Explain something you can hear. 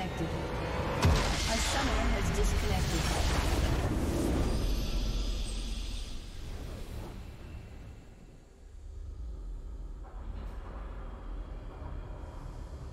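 A triumphant game fanfare swells up and plays on.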